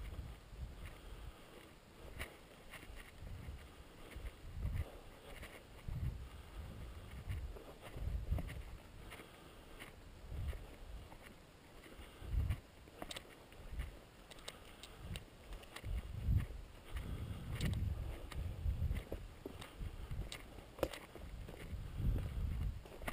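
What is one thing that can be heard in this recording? Footsteps crunch through dry leaves and twigs at a walking pace.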